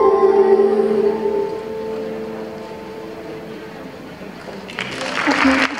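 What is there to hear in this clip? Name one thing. A young girl sings a long held note through a microphone and loudspeakers, slowly fading.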